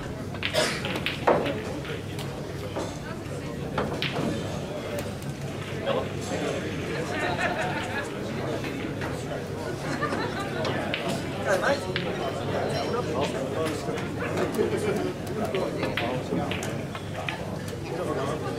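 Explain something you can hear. Men chat in the background of a large hall.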